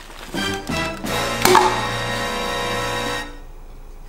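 A lid pops off a tin can.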